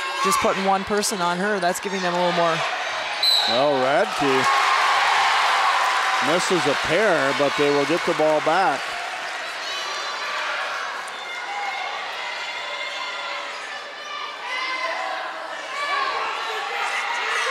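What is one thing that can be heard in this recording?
A crowd cheers and chatters in an echoing gym.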